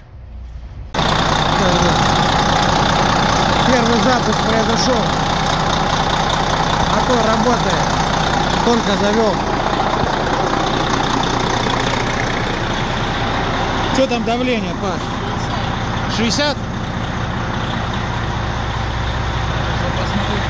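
A large diesel engine runs with a loud, steady roar.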